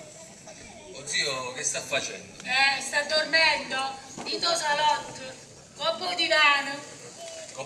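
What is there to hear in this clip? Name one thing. A woman speaks expressively on stage, heard through a microphone.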